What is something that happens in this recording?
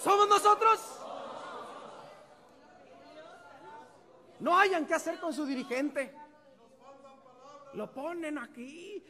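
A man preaches with passion through a microphone in a large echoing hall.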